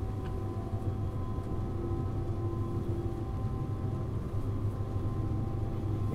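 An electric train motor hums with a steady whine.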